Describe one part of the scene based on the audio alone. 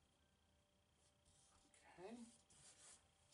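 Fingers rub softly across paper.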